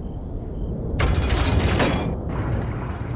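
A metal lever clanks as it is pulled.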